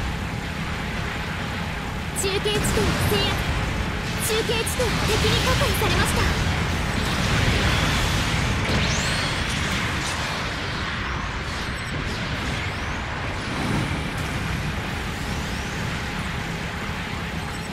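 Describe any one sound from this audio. A heavy engine roars steadily throughout.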